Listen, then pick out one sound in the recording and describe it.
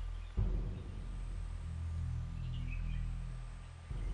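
A small animal tears and chews at a carcass.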